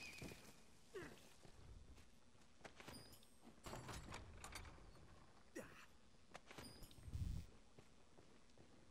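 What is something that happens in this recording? Footsteps scuff and tap on a stone floor.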